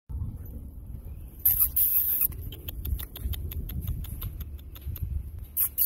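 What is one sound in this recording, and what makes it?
A puppy sniffs along the ground.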